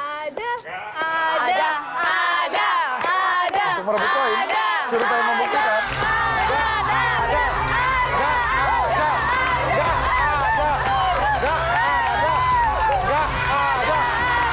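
A small group of people claps their hands.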